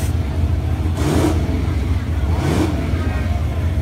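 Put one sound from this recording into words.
Race car engines rev in short sharp bursts.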